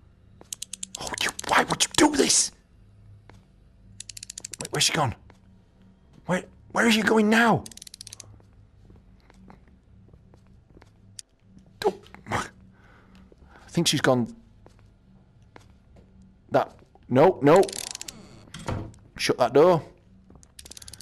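A young man speaks in short, animated bursts close to a microphone.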